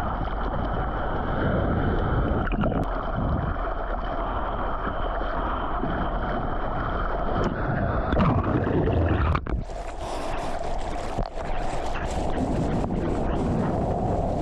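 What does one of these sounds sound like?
Waves roll and crash nearby.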